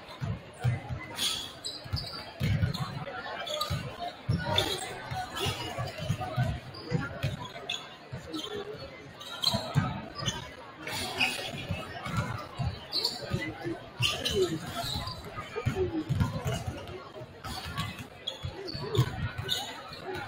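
A crowd murmurs and chatters in the stands.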